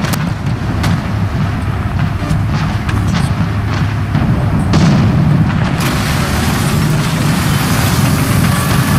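A tank engine rumbles and clatters steadily.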